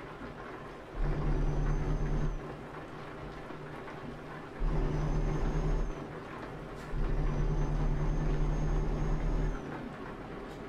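A truck engine roars louder in several bursts as it accelerates.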